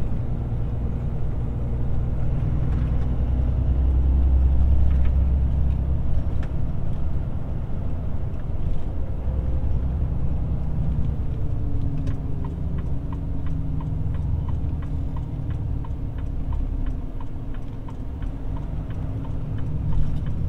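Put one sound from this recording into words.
A vehicle engine drones steadily at cruising speed.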